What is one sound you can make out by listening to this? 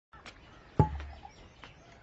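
A metal cup clinks as it is set down.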